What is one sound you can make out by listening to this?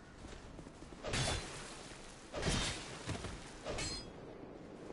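A sword slashes and strikes with sharp impacts.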